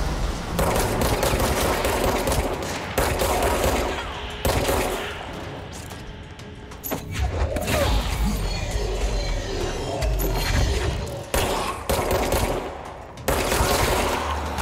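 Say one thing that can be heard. Loud explosions burst and rumble.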